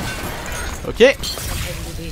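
A gun fires a sharp sniper shot.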